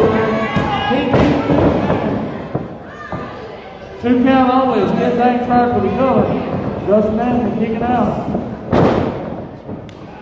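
Wrestlers thud heavily onto a mat.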